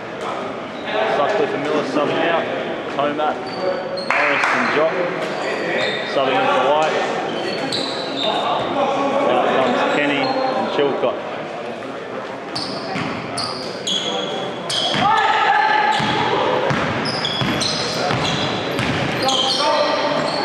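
Young men call out and chatter in a large echoing gym.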